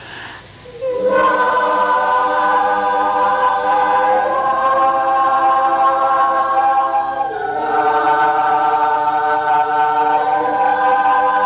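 A class of children sings together.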